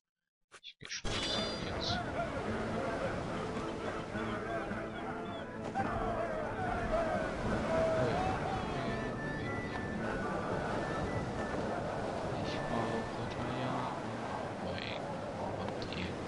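Waves wash against a shore.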